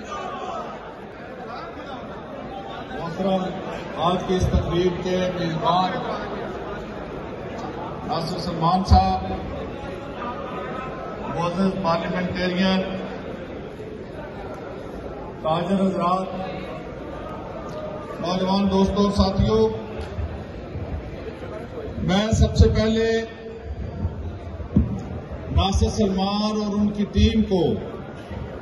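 A large crowd murmurs.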